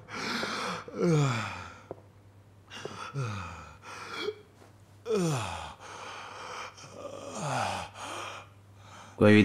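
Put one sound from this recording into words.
A man moans weakly in pain, close by.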